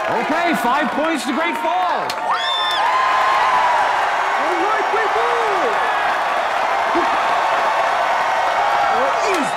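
A large crowd cheers and claps.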